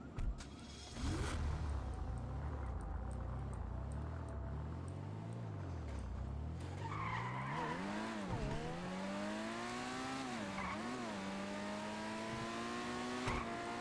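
A car engine starts up and revs, rising and falling as the car drives off.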